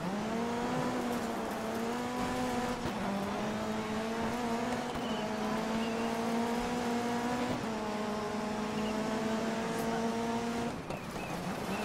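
A rally car engine whines at high revs, shifting gears as it races.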